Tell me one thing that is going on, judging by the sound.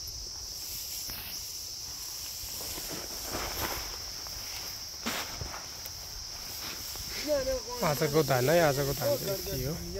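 Grain pours and patters from a winnowing tray onto a pile.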